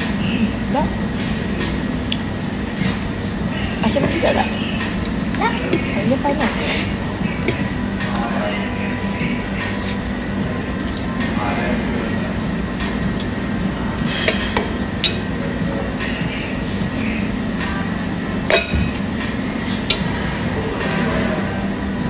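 A fork and spoon clink and scrape against a plate.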